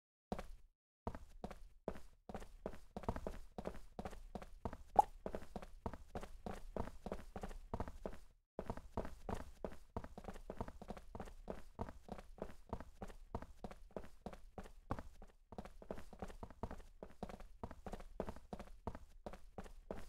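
Quick footsteps tap steadily on a hard floor.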